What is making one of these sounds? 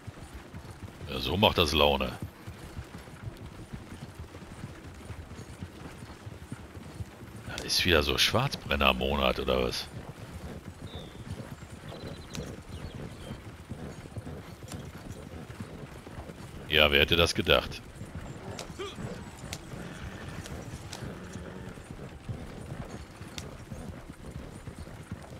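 A wagon rattles and creaks along a dirt track.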